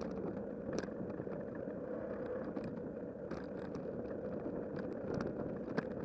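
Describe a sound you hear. Bicycle tyres roll over a paved path.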